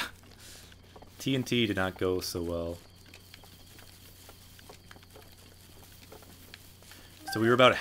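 Footsteps rustle through tall grass.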